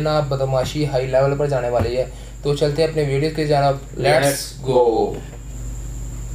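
A young man talks with animation close by.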